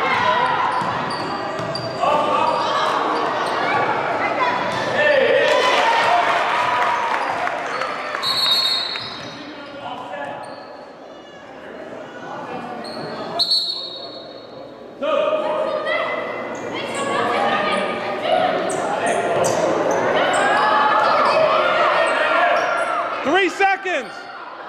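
Sneakers squeak on a wooden gym floor.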